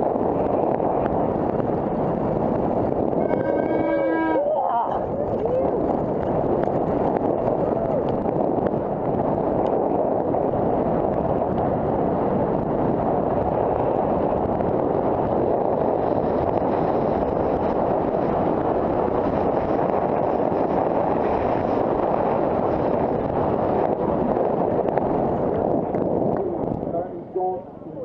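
Downhill mountain bike tyres rattle and skid over a dirt trail.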